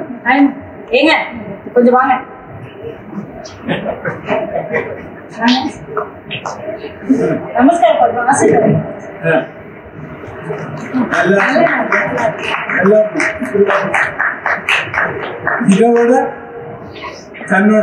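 A woman speaks over a loudspeaker in a large echoing hall.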